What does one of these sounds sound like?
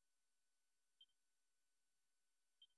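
Short electronic menu blips sound.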